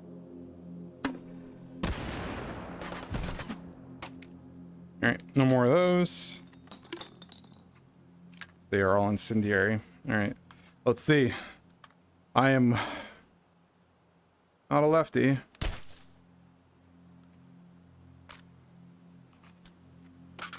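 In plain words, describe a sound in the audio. A rifle's metal parts click and clack as it is handled and reloaded.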